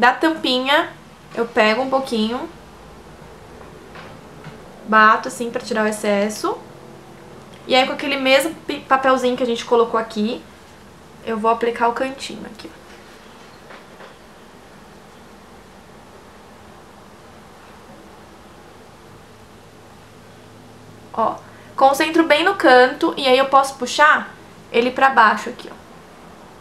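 A young woman speaks calmly and close by, in short bursts with pauses.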